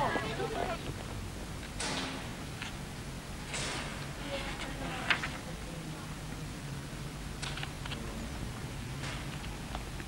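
Magazine pages rustle as they are turned.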